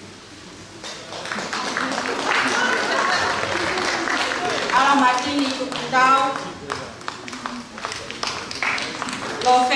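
A young woman speaks into a microphone, heard through loudspeakers in an echoing hall.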